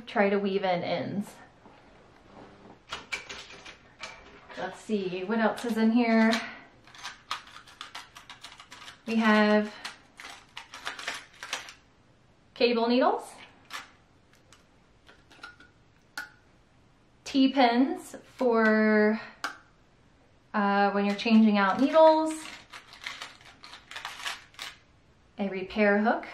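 A young woman talks calmly close by, in short bursts with pauses.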